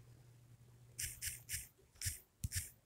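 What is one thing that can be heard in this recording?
Soft phone keyboard clicks tap out a few quick keystrokes.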